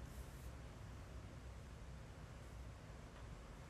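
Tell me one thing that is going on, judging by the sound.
A young woman giggles softly close to a microphone.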